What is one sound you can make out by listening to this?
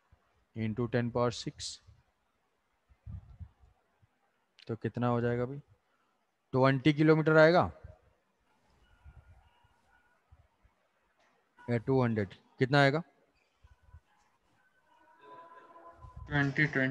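A young man speaks calmly in short phrases through a microphone on an online call.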